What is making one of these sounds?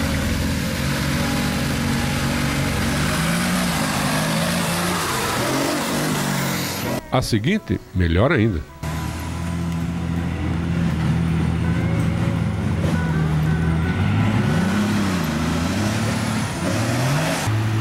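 A heavy off-road truck engine roars and revs up and down close by.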